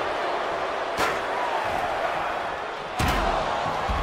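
Heavy thuds ring out as wrestlers slam onto the ring mat.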